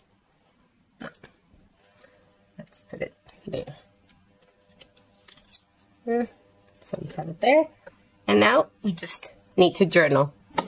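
Paper rustles and taps softly as it is pressed and handled.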